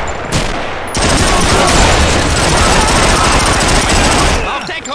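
A submachine gun fires in rapid, loud bursts.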